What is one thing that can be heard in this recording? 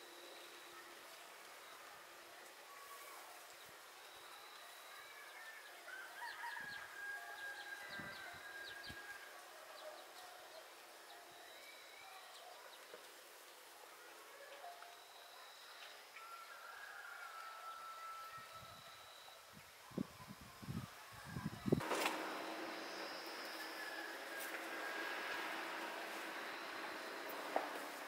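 Carrot leaves rustle as a woman sorts carrots by hand.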